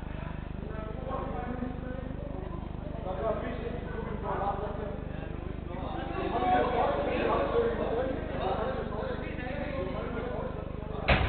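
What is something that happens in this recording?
Young men shout and call out to one another in a large echoing hall.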